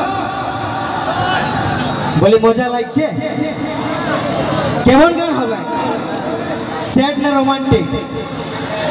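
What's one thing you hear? A band plays music through loudspeakers outdoors.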